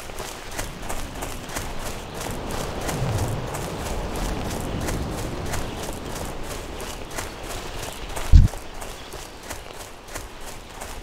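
Quick footsteps run steadily through grass.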